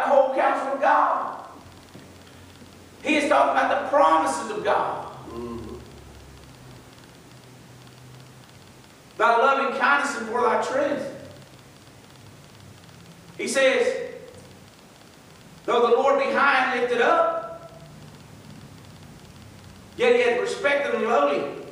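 An elderly man speaks calmly into a microphone in bursts with pauses, heard in a room with some echo.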